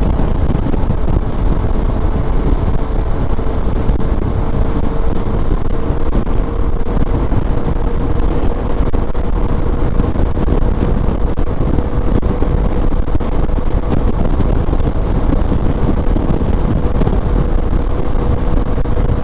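Wind roars loudly against a microphone on a moving motorcycle.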